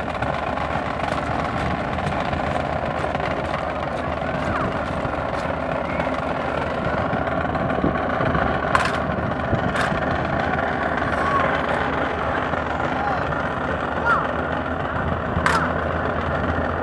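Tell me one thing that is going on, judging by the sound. A brass band plays outdoors.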